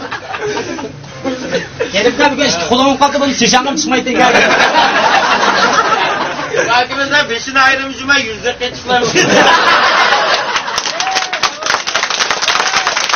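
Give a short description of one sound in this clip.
A group of men talk and laugh loudly together close by.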